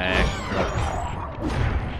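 A heavy blow lands on a cartoon figure with a loud whack.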